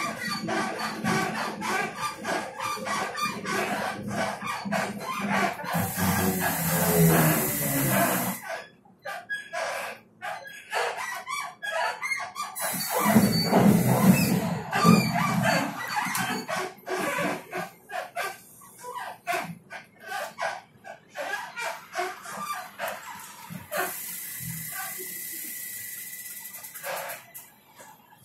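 A bus rumbles along as it drives, heard from inside.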